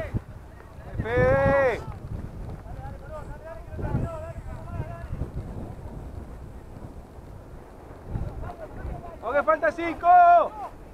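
A man shouts loudly from close by.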